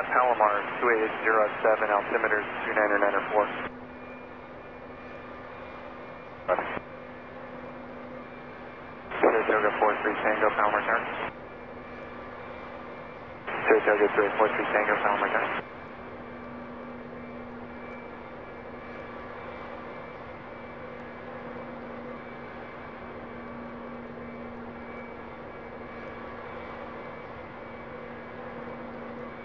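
A jet airliner's engines hum steadily as it taxis.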